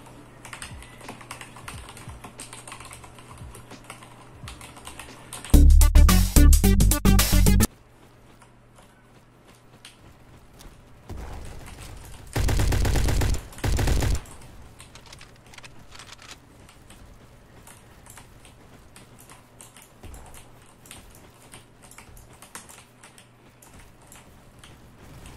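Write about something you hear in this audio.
Keyboard keys clack rapidly under fast typing.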